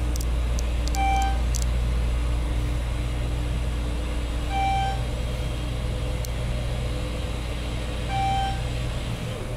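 An elevator chime dings as it passes each floor.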